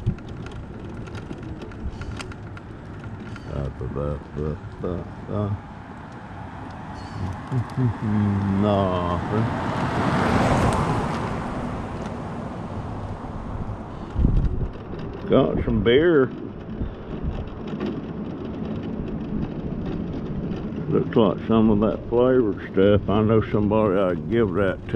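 An electric mobility scooter hums as it rolls along.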